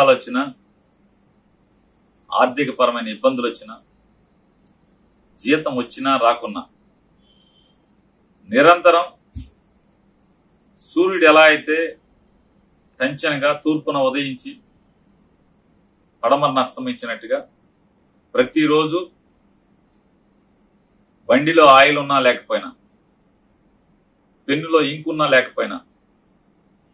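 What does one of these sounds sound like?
A middle-aged man speaks calmly into a nearby microphone, in short phrases with pauses.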